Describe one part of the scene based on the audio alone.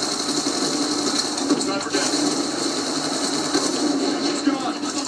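Video game gunfire and explosions play loudly through loudspeakers.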